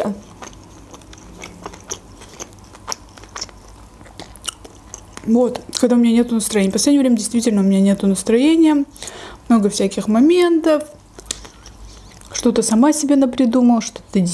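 A fork scrapes and clinks against a cup of noodles.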